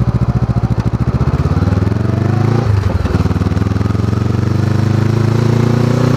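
A motorcycle engine revs up as the bike speeds up, with a brief dip at a gear change.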